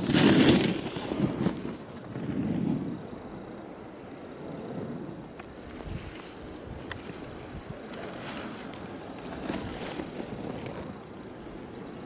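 Skis scrape and hiss across packed snow.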